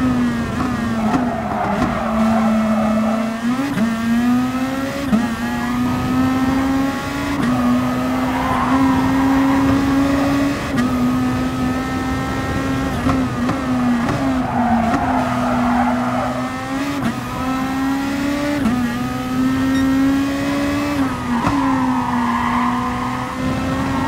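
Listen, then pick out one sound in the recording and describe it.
Tyres squeal through the corners.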